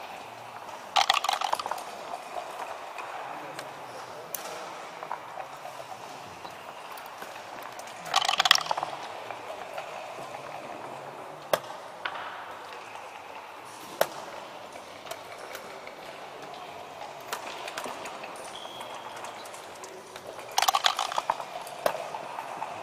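Dice rattle and tumble across a wooden board.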